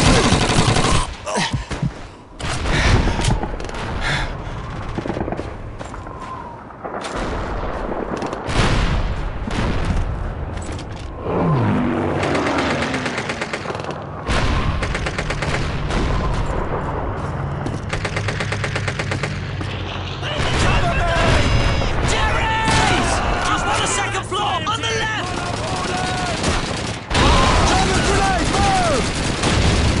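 Gunshots crack and boom in a battle nearby.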